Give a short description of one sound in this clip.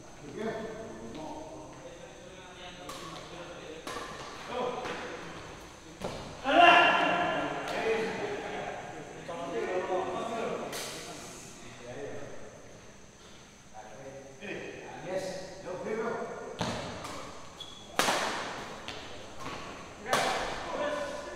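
Badminton rackets strike a shuttlecock in an echoing hall.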